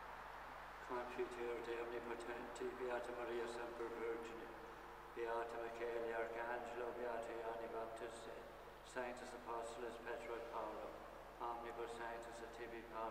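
A man chants slowly in a large, echoing hall.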